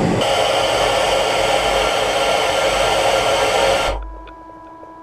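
Air hisses loudly inside a spacesuit, then stops.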